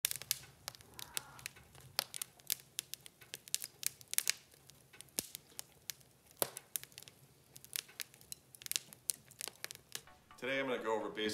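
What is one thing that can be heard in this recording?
Wood fire crackles and pops.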